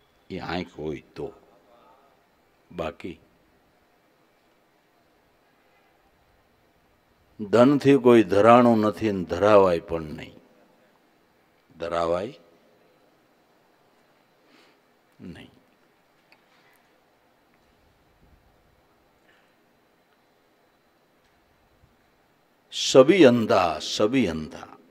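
An older man speaks calmly into a microphone, in short phrases with long pauses.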